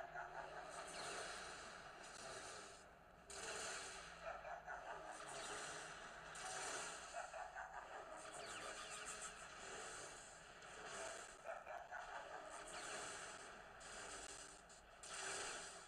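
Blaster shots fire rapidly.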